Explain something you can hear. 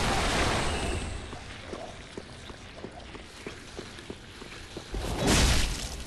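Armoured footsteps thud and clink on stone.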